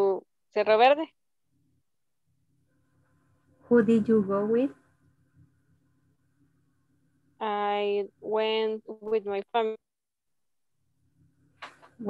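Adults speak in short, clear phrases by turns through an online call.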